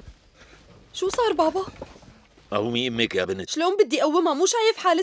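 A young woman speaks urgently, close by.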